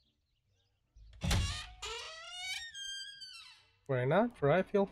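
A wooden door creaks open slowly.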